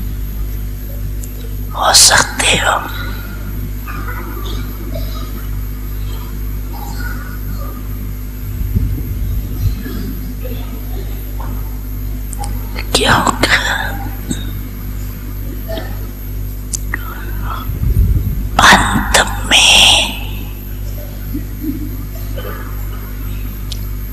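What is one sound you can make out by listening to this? An elderly woman speaks calmly and slowly into a microphone, heard through a loudspeaker.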